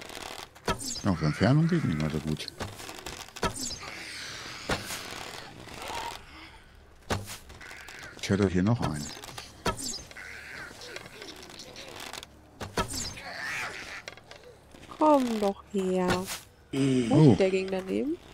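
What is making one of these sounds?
A zombie growls and moans nearby.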